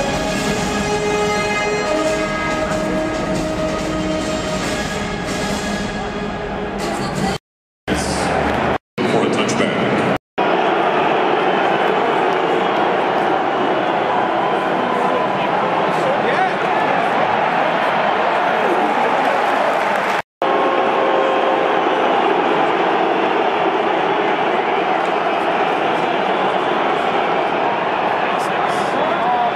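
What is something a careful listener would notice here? A large crowd cheers and roars steadily in a big open stadium.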